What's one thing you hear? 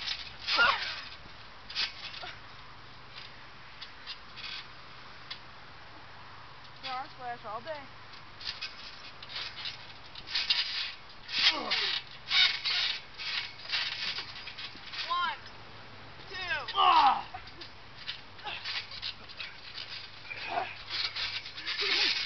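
A trampoline mat thumps and creaks under bodies landing on it.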